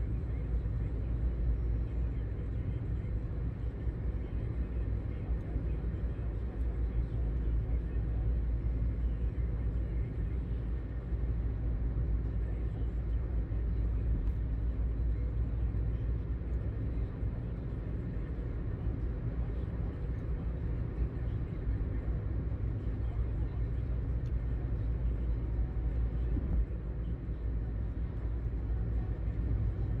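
A car engine hums steadily with low road rumble from inside the car.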